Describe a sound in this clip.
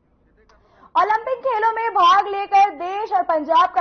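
A young woman speaks clearly and steadily into a microphone.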